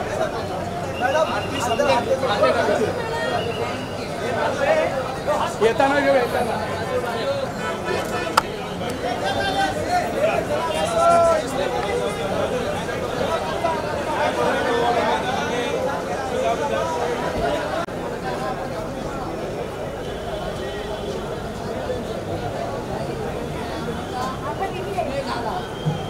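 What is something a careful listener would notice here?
A large crowd chatters and shouts loudly all around.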